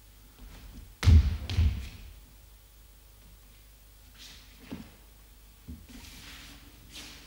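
Feet thud and scuff on a wooden floor.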